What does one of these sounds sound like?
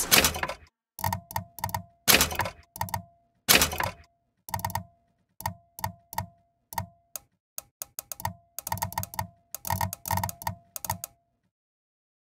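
Short game menu clicks and beeps sound again and again.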